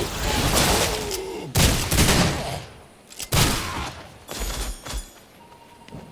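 Blades clash and strike in a fierce fight.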